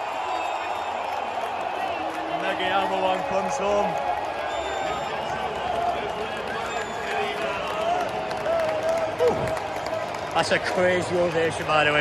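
Fans clap their hands.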